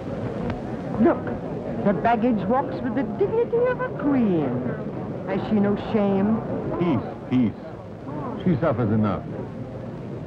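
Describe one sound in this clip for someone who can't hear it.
A woman speaks loudly and with agitation.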